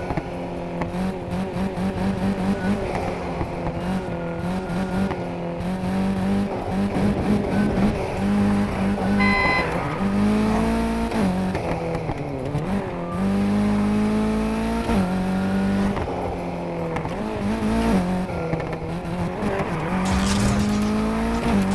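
A car engine revs hard and shifts gears as the car races.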